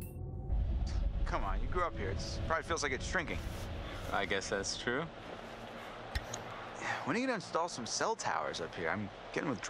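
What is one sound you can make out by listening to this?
Another young man answers in a light, joking tone.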